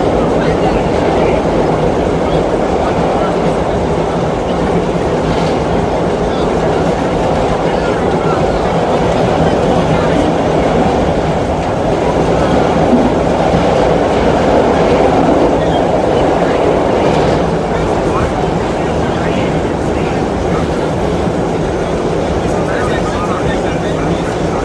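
A subway train rumbles and rattles loudly along the tracks.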